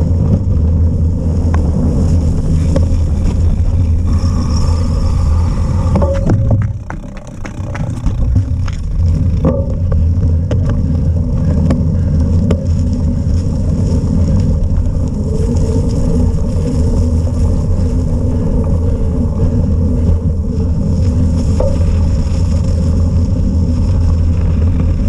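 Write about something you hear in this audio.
Strong wind buffets the microphone with a loud, steady rumble.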